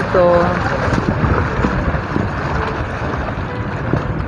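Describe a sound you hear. Water splashes and laps against rocks at the shore.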